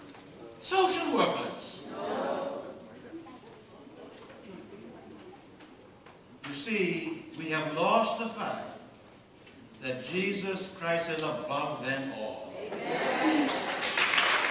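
An elderly man speaks with emphasis into a microphone in a large hall.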